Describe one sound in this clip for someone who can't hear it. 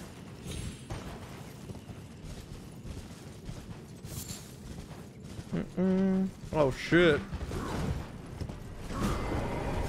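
A horse gallops with hooves thudding on the ground.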